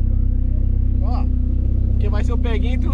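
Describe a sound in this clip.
A man speaks with animation from just outside the car.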